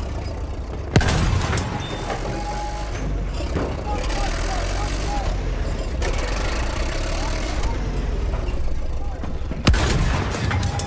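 A shell explodes with a heavy boom.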